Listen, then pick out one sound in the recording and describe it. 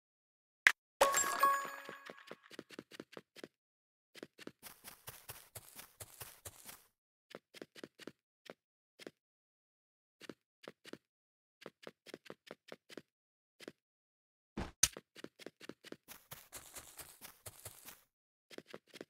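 Blocks snap into place with rapid soft clicks.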